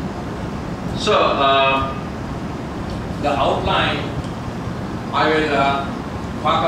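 An elderly man speaks calmly through a microphone in short phrases with pauses.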